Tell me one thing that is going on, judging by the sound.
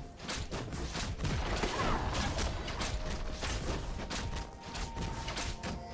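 Magic blasts and hits crackle and thump in a fast video game battle.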